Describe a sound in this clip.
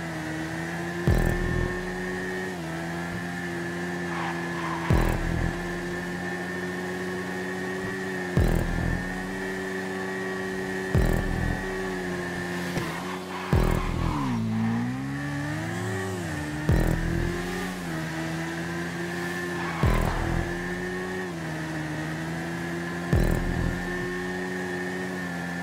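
A motorcycle engine hums steadily at high speed, briefly dropping in pitch and rising again.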